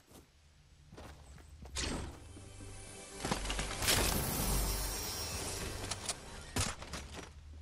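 A treasure chest hums and shimmers loudly as it opens.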